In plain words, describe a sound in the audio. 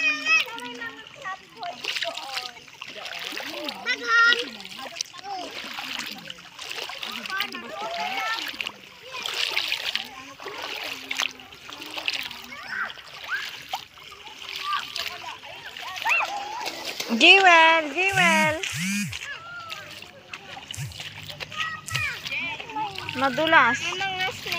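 Feet splash while wading through ankle-deep water.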